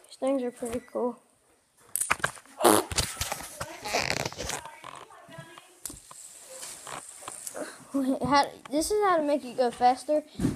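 A boy talks close to a microphone with animation.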